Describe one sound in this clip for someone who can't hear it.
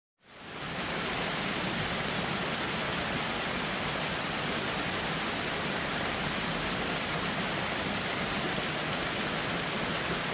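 A waterfall roars steadily, with water rushing and splashing.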